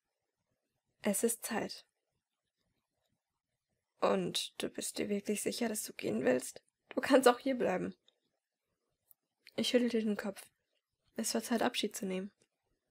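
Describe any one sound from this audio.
A young woman speaks calmly and closely, in short phrases with pauses.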